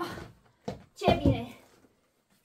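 A bag is set down on the floor with a soft thud.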